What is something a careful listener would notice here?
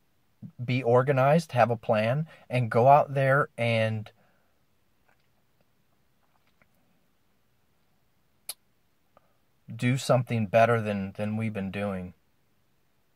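A middle-aged man talks calmly and close up, with pauses.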